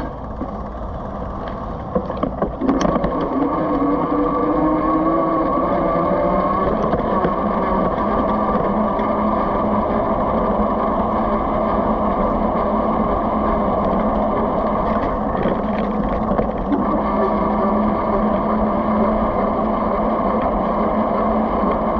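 Tyres roll over a rough road surface.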